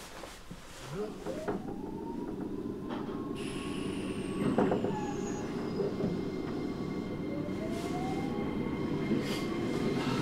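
Train wheels rumble and clack on the rails.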